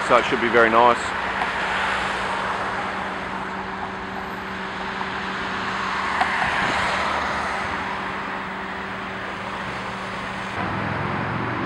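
Cars rush past close by with a steady roar of traffic.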